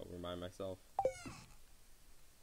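A short, bright game chime sounds once.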